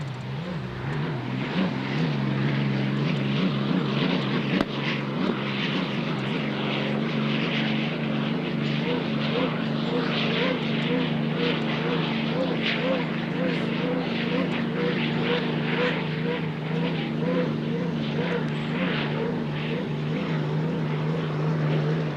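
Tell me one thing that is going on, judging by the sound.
Spray hisses and rushes behind a speeding boat.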